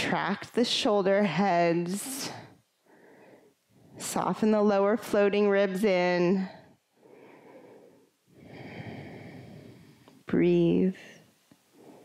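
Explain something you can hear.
A young woman speaks calmly through a headset microphone.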